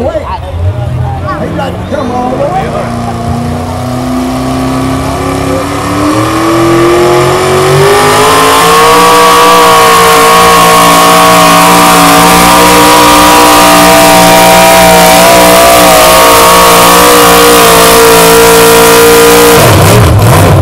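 A tractor engine revs up and roars loudly as it pulls a heavy sled.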